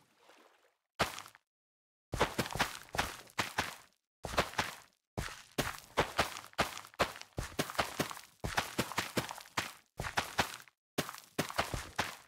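Plants snap and crunch in quick bursts as they are broken one after another.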